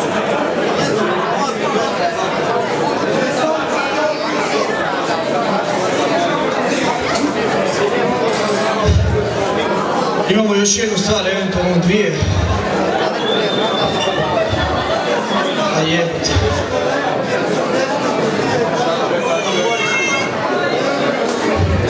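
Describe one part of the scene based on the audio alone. A metal band plays loud distorted guitars and drums through a loud sound system.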